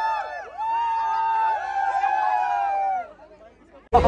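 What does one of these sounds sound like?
A crowd of young people screams and cheers loudly close by.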